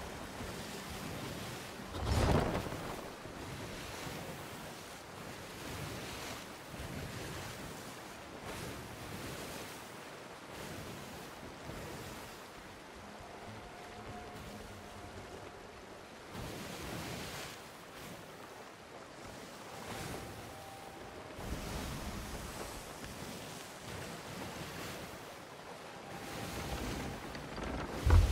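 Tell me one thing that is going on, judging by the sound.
Strong wind rushes steadily outdoors.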